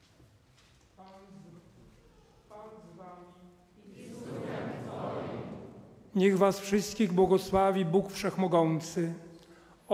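An elderly man speaks slowly into a microphone in a large echoing hall.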